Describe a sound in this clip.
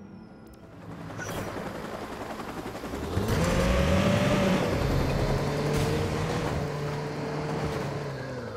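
A car engine revs and hums as the car drives along a road.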